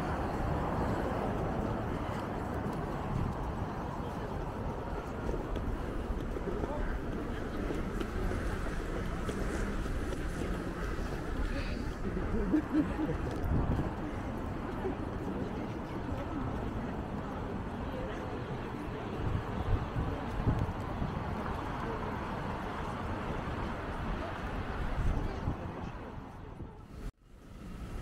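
Traffic hums steadily nearby outdoors.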